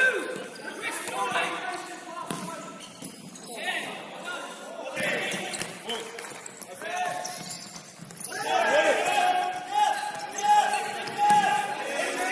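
Men shout to each other across the hall.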